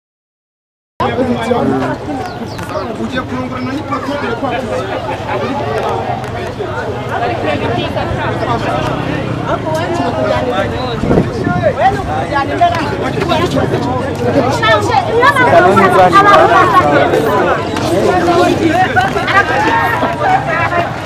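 A crowd of children and adults chatter and shout outdoors.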